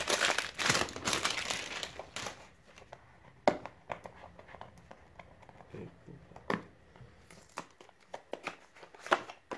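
A cardboard box rustles and scrapes as hands open it.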